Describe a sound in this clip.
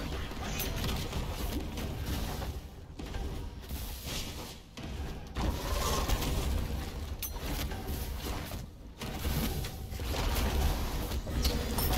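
A game's fire blasts whoosh and crackle in bursts.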